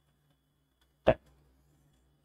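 A plastic drawing ruler clicks as it is shifted.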